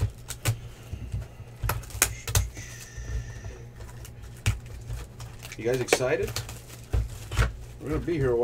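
Plastic wrapping crinkles as a box is unwrapped.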